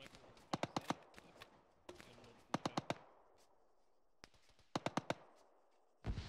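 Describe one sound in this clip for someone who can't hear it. A rifle fires in quick, loud bursts.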